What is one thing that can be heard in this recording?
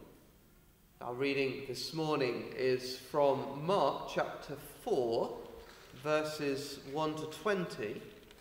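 A man reads aloud calmly into a microphone in a large echoing hall.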